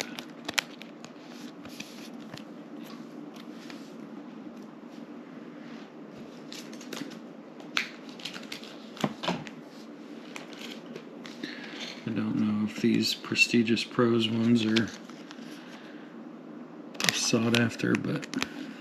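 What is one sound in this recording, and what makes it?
Hands shuffle and slide glossy trading cards against each other.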